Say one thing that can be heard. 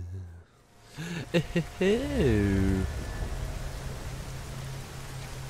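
Heavy rain falls steadily outdoors.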